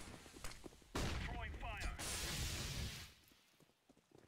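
A stun grenade bursts with a loud bang.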